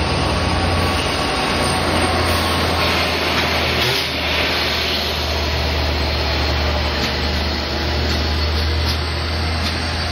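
A passenger train rushes past close by with a loud clatter of wheels on rails.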